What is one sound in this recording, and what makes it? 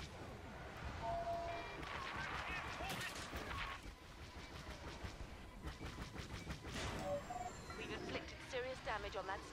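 Electronic beeps and chirps sound in short bursts.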